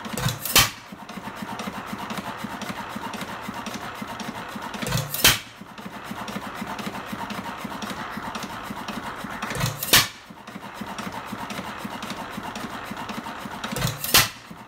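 An old stationary engine chugs steadily with a rapid ticking.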